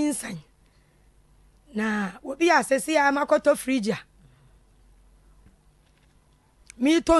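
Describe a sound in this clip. A woman speaks with emotion into a microphone, close by.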